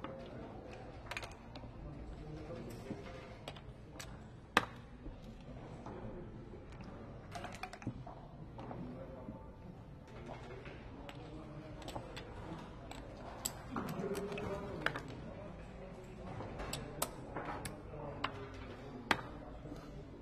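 Dice rattle in a cup and tumble onto a board.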